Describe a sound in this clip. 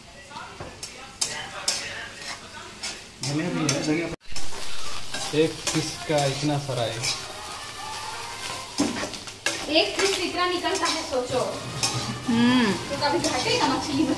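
A metal spatula scrapes and clatters against a frying pan.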